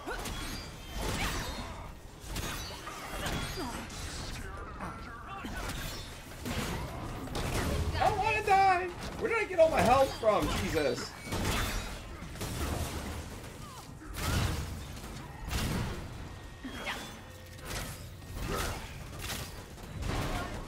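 Explosions and energy blasts boom and crackle again and again.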